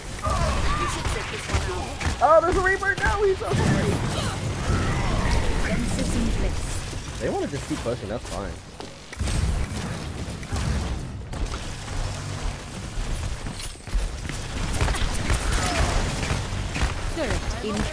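Game explosions and impact effects thump.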